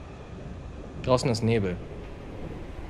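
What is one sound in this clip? A young man speaks briefly with animation into a microphone.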